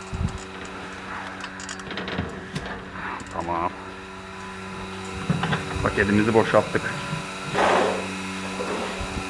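A metal wheelbarrow rattles and clanks as it is pushed.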